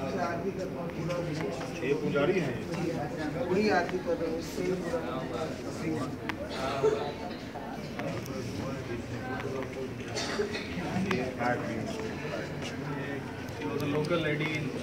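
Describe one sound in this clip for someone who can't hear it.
Several men talk quietly nearby in an echoing room.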